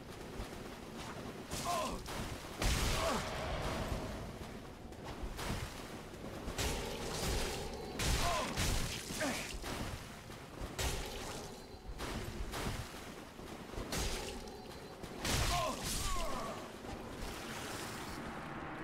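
Blades clash and strike repeatedly in a fight.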